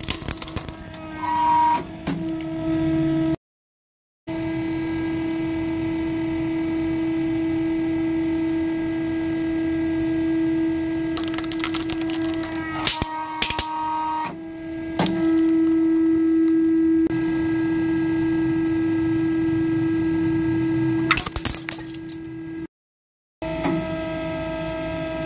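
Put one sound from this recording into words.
A hydraulic press hums steadily.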